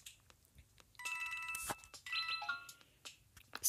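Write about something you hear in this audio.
Bright electronic game chimes ring out in quick bursts.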